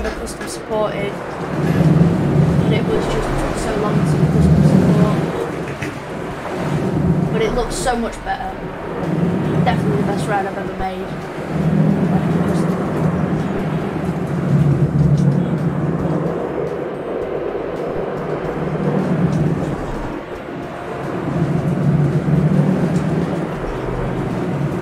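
A roller coaster car rumbles and rattles along its track.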